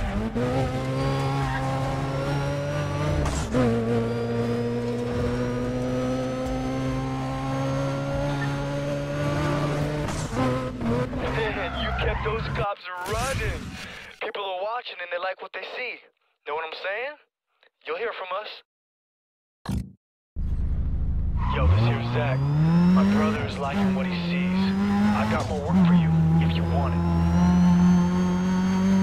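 A racing car engine roars loudly, rising and falling in pitch.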